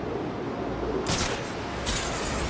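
A grappling line fires with a sharp whoosh.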